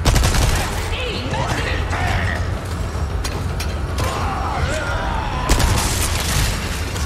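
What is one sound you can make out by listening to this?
A chainsaw revs and roars.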